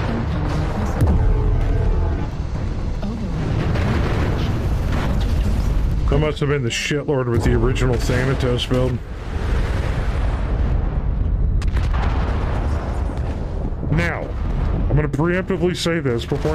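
Explosions and heavy gunfire rumble loudly.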